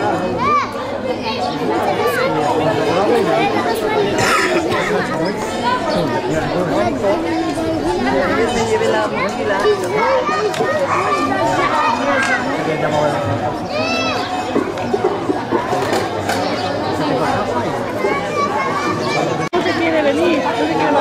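A crowd of men and women shout and chatter excitedly outdoors.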